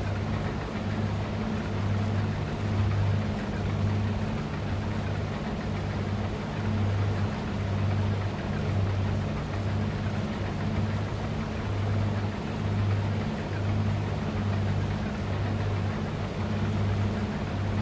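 A combine harvester engine drones steadily with a low pulsing hum.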